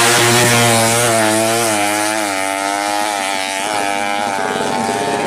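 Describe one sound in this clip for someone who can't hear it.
A motorcycle engine roars and revs as it speeds past.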